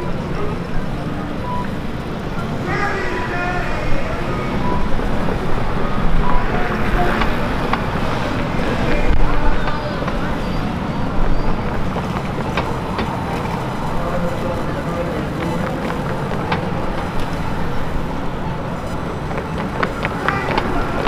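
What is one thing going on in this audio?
Cars drive through a busy city intersection.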